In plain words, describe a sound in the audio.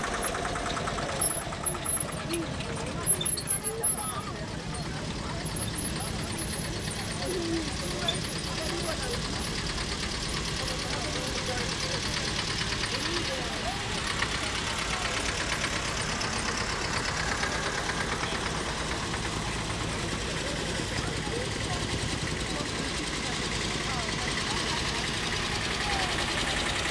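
Old tractor engines chug past at low speed.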